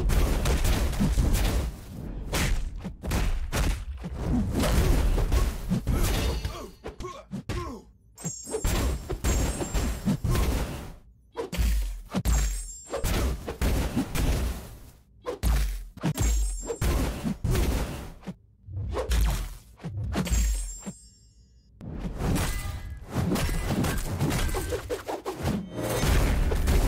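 Flames whoosh and crackle around a fighter.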